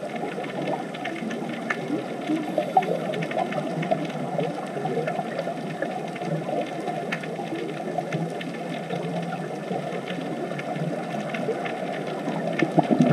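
Scuba divers' regulators bubble and hiss underwater.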